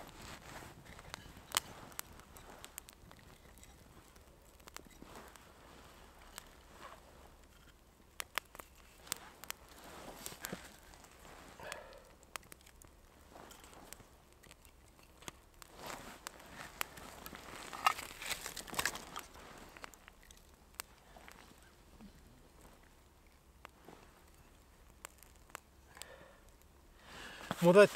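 A small campfire crackles softly.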